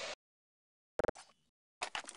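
A knife is drawn with a sharp metallic scrape.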